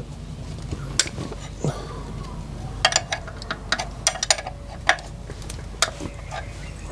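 Metal tools click and clink against engine parts.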